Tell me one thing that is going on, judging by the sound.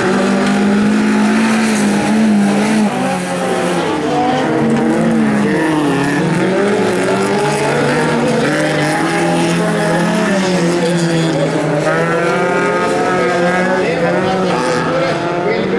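Tyres skid and spray gravel.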